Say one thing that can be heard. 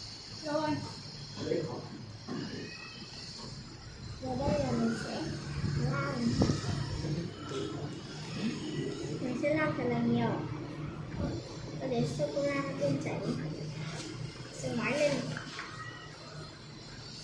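A young girl talks nearby in a high voice.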